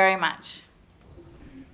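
A woman speaks briefly through a microphone in a large room.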